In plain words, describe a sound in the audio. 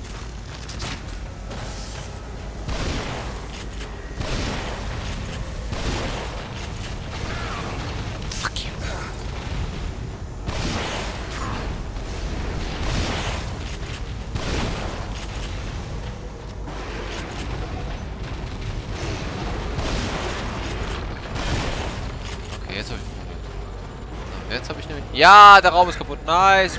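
Gunshots boom repeatedly.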